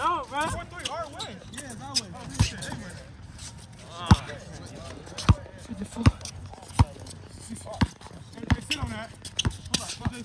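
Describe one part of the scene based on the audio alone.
Young boys shout and call out nearby outdoors.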